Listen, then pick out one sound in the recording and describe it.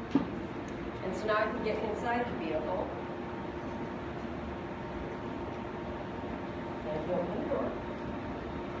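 A woman talks briefly nearby.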